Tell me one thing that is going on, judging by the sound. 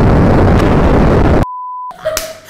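A huge explosion roars loudly.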